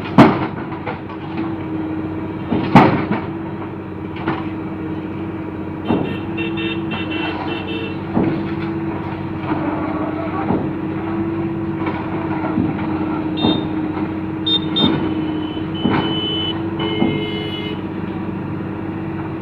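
An engine rumbles steadily.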